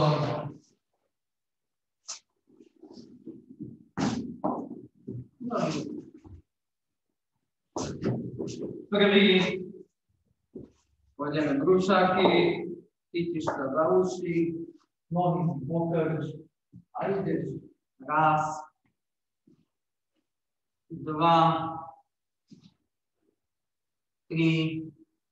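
A young man speaks calmly and clearly, giving instructions close by.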